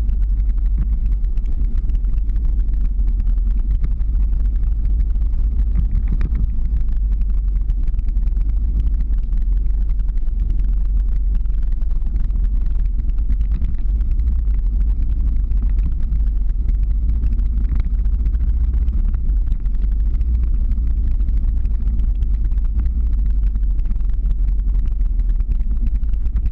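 Skateboard wheels rumble on asphalt.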